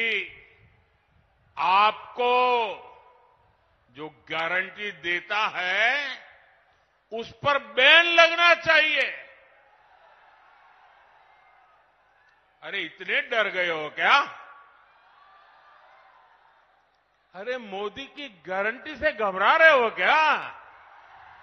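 An elderly man speaks forcefully into a microphone over loudspeakers, in bursts with pauses.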